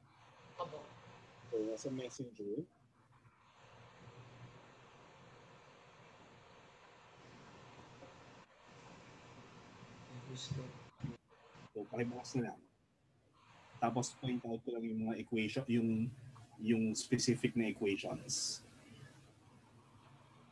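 A man explains calmly through a microphone, with pauses.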